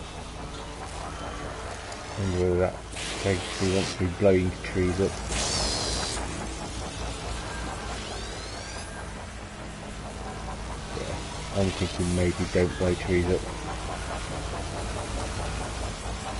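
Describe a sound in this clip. A hovering drone hums steadily.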